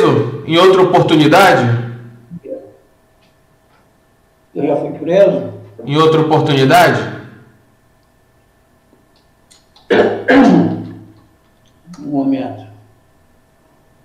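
An elderly man speaks calmly nearby, in short bursts with pauses.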